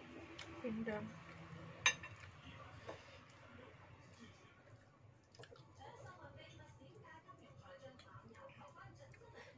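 A metal spoon clinks against a bowl.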